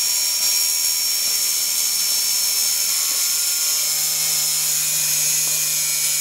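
An angle grinder cuts through a metal wire.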